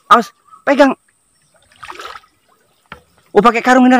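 Water splashes as a man wades.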